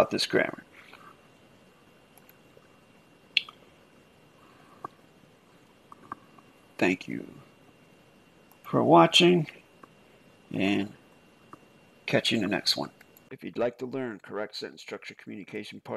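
A middle-aged man speaks calmly into a microphone, in short bursts with pauses.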